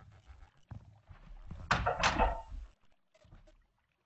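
A wooden door swings open with a creak.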